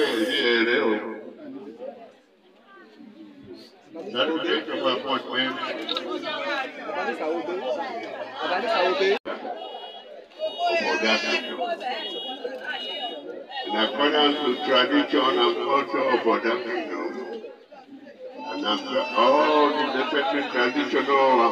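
A crowd of people chatters and calls out nearby.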